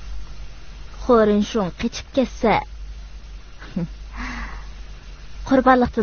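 A young woman speaks with strong feeling, close by.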